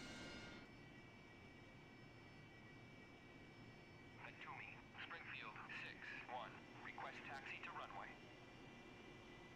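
A jet engine rumbles as an aircraft taxis.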